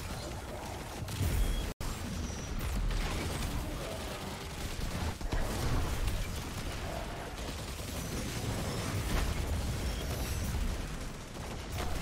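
Explosions boom now and then.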